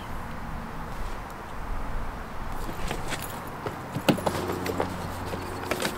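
Bags thump and rustle as they are lifted.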